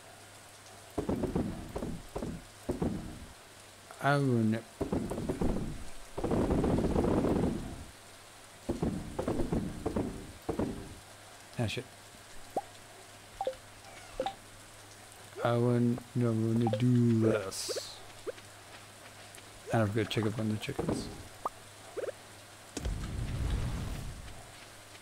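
A young man talks casually and animatedly into a close microphone.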